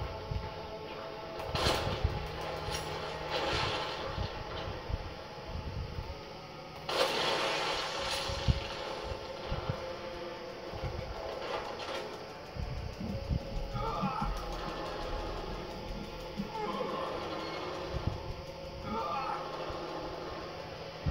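Action game sounds with thuds and bursts play through a television speaker.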